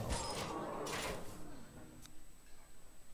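Magical game sound effects whoosh and chime.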